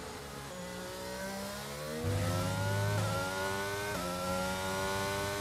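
A racing car engine whines, rising in pitch as it speeds up, with quick dips at each gear change.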